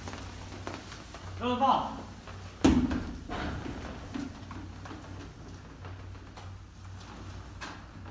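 Bicycle tyres roll along a hard floor in an echoing corridor.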